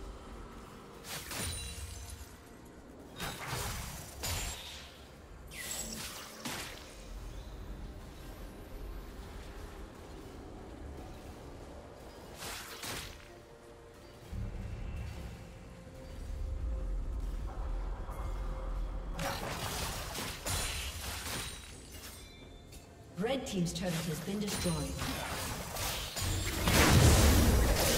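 Spell effects crackle and burst in a fantasy battle game.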